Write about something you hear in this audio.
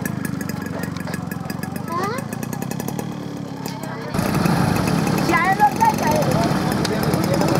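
A small motorcycle engine putters as it rides along.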